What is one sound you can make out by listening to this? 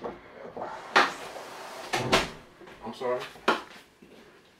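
Slices of squash drop with soft thuds.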